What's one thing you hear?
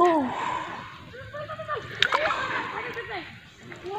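Feet wade and slosh through shallow water.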